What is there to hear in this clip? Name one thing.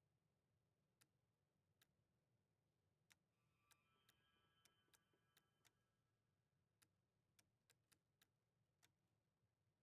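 A dial clicks sharply as its numbers are turned one by one.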